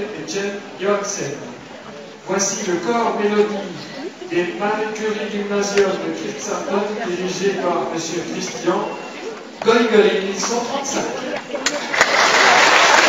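A middle-aged man speaks calmly into a microphone, heard over loudspeakers in a large hall.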